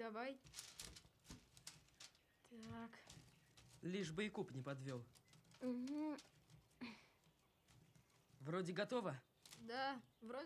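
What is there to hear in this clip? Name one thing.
Wicker baskets rustle and creak as they are handled.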